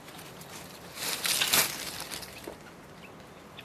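Guinea fowl cackle loudly nearby.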